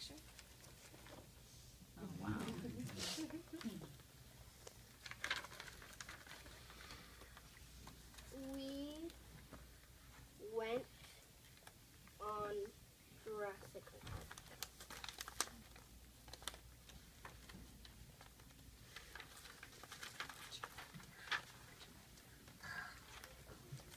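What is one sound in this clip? Paper pages rustle as a book is turned.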